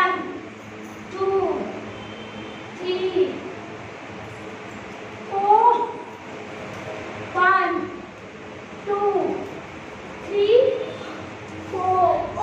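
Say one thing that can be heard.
A woman calls out in a sing-song voice at regular intervals, in an echoing room.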